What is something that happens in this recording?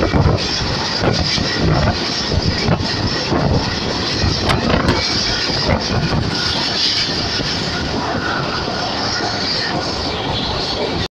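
Wind rushes loudly past an open window.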